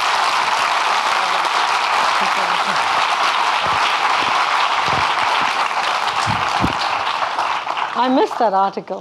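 A large audience applauds in a hall.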